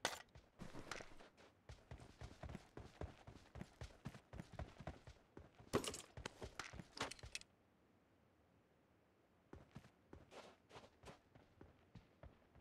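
Footsteps crunch quickly on dry sand.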